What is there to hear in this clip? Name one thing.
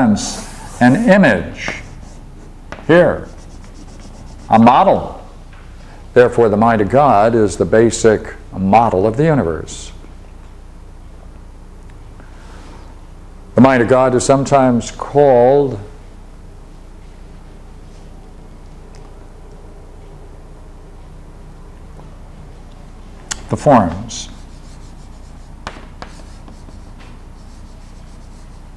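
Chalk scrapes and taps on a blackboard.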